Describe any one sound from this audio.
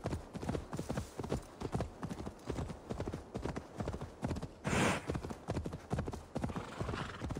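A horse's hooves thud rhythmically on soft ground at a gallop.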